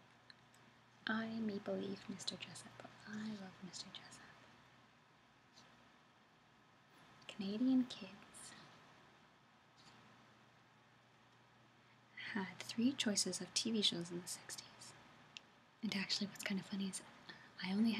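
A woman speaks calmly and close by, in short bursts.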